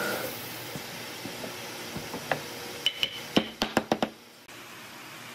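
Wooden pieces knock against a wooden board.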